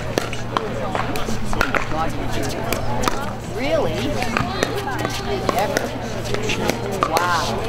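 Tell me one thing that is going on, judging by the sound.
Paddles hit a plastic ball with sharp pops.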